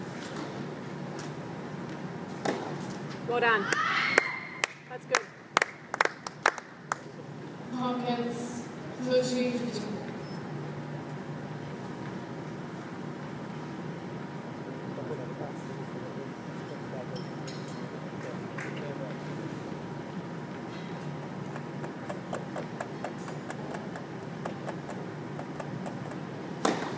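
Tennis balls are struck with rackets and bounce in a large echoing hall.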